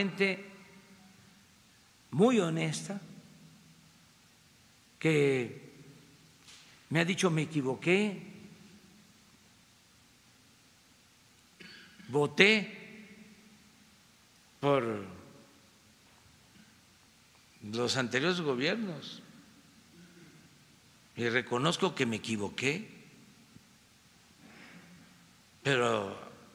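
An elderly man speaks into a microphone in bursts, with pauses between, in a large echoing hall.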